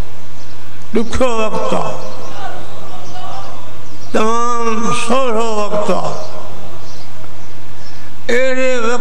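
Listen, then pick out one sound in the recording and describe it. An elderly man speaks slowly and solemnly into a microphone.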